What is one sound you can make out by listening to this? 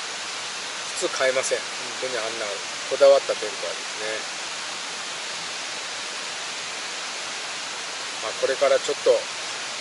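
A middle-aged man speaks calmly and softly, close by.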